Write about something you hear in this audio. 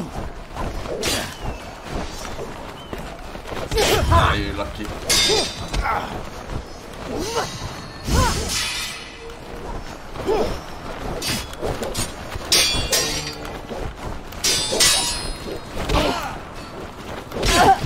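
Swords clash and clang in a game.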